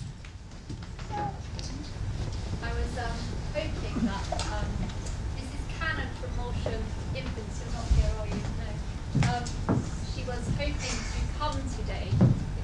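A woman speaks calmly through a loudspeaker in a large echoing hall.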